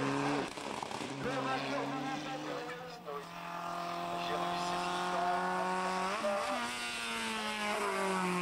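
A small rally car engine revs hard and drops as the gears shift.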